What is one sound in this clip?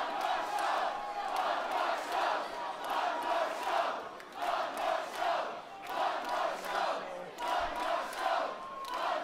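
A large crowd claps and chants in a steady rhythm.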